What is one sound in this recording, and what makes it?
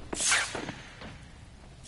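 A swarm of bats flutters past with a rushing whoosh.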